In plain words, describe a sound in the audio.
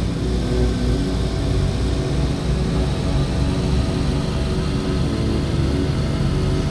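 Tyres rumble on a rough road.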